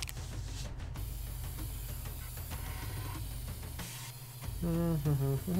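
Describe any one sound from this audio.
A spray can hisses as paint sprays.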